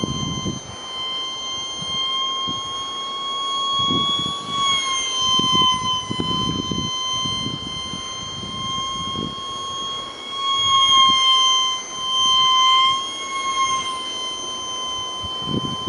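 A small drone's propellers whine steadily overhead, the pitch rising and dipping slightly.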